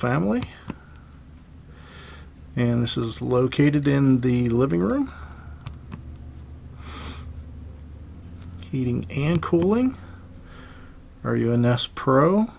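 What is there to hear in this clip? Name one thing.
A dial clicks softly as a hand turns it.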